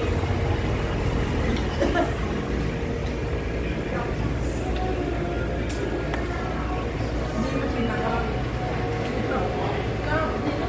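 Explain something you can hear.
Washing machines hum steadily.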